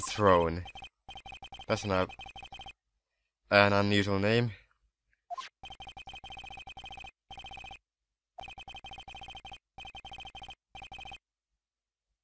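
Short electronic blips tick rapidly in bursts as text types out.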